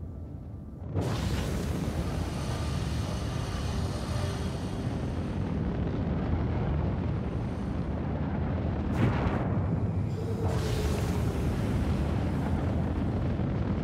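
A spacecraft engine roars steadily.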